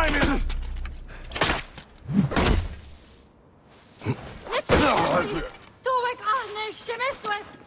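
Metal weapons clash and thud in a fight.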